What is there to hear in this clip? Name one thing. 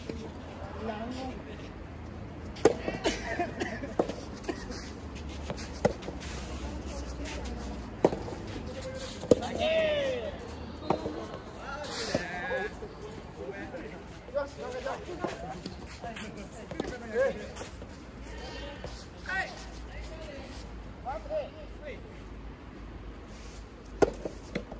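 Young men and women call out and talk from a distance.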